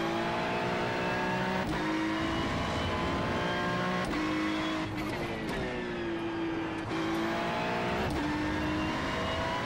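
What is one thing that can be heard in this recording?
A racing car engine roars loudly, rising in pitch and dropping sharply at each gear change.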